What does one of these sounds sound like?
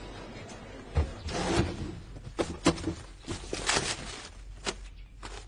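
Paper rustles as a hand rummages through things.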